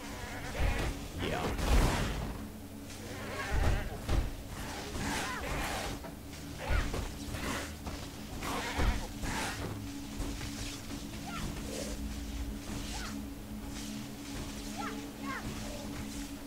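Spell blasts crackle and whoosh in quick bursts.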